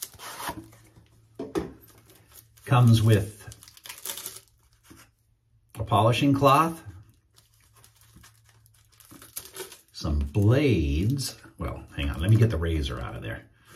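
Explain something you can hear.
A plastic box rattles and clicks in a man's hands.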